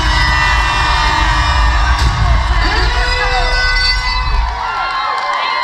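Loud live music with a heavy bass beat plays through loudspeakers in a large room.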